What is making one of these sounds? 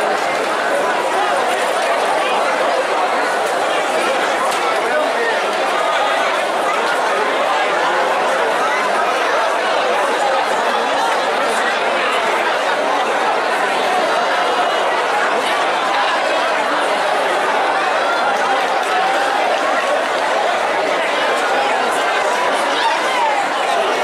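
Drums beat steadily with a brass band.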